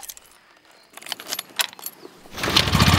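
Keys jingle and click into an ignition.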